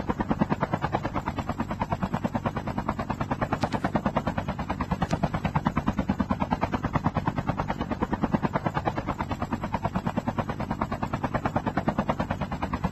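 Helicopter rotor blades chop rapidly and steadily overhead.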